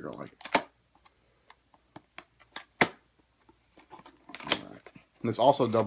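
Cardboard scrapes and taps as a box is opened.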